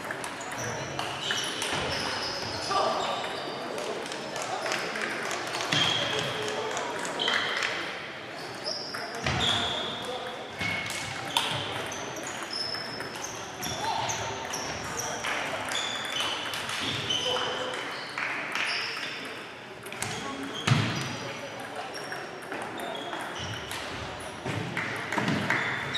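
Many people talk in a steady murmur across the echoing hall.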